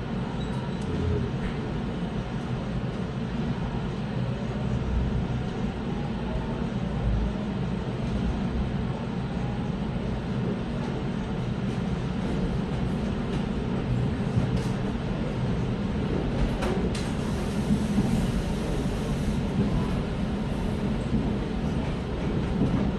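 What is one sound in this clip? An electric commuter train rumbles along the rails, heard from inside a carriage.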